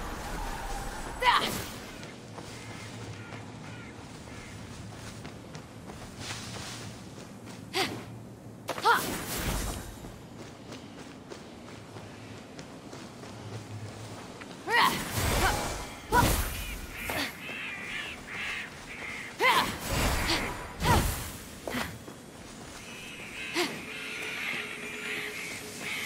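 Quick footsteps run over dry grass and dirt.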